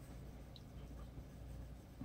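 A colored pencil scratches softly across paper.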